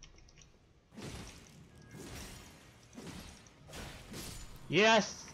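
Swords swing and strike in quick, heavy blows.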